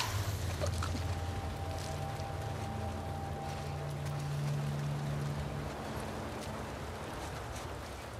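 Footsteps creep over wet pavement.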